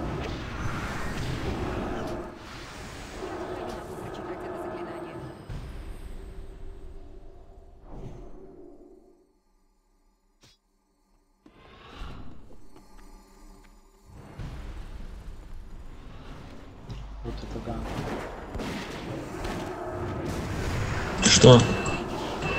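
Spells and weapon blows clash in a busy fight.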